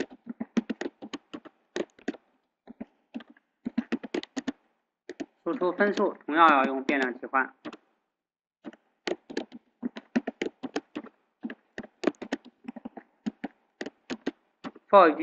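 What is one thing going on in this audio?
Keys clatter quickly on a keyboard.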